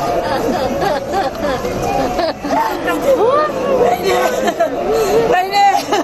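A woman wails and sobs loudly nearby.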